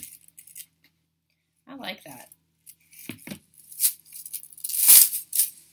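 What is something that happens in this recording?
Metal chains clink and jingle as they are handled.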